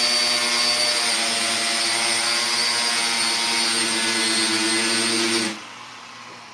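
A power tool grinds loudly through metal, close by.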